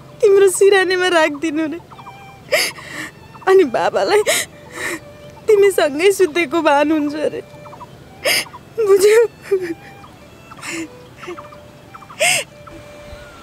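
A woman speaks close by in a tearful, wavering voice.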